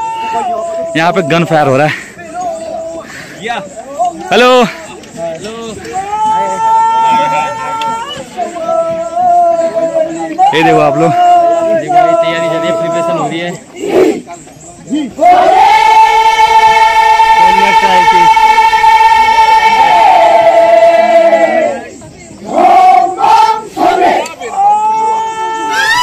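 A crowd of men and boys chants and sings loudly outdoors.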